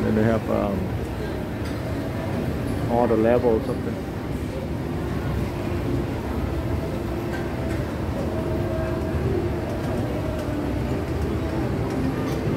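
A crowd murmurs indistinctly in a large echoing hall.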